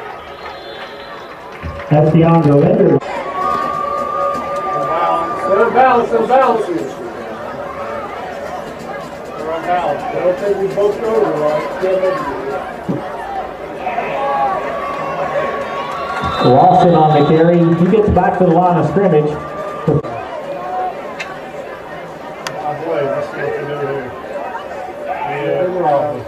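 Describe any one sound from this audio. A crowd cheers and shouts in a large open stadium.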